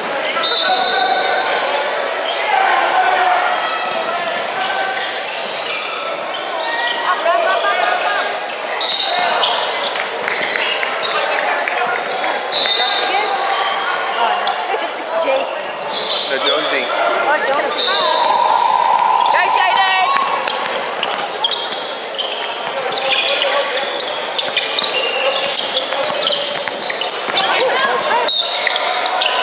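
Players shout and call out in a large echoing hall.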